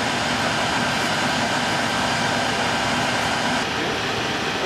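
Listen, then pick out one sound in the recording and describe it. A fire engine's pump drones steadily close by.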